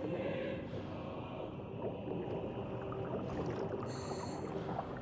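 Water churns and bubbles, muffled underwater.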